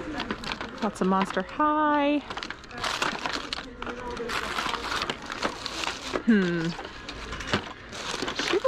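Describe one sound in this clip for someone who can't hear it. Plastic dolls clatter and rustle as a hand rummages through a pile of them.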